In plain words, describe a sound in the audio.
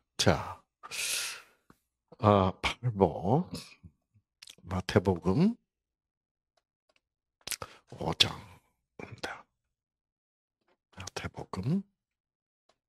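An elderly man speaks calmly into a microphone in short bursts with pauses.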